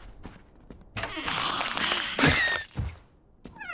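A door creaks open and shut.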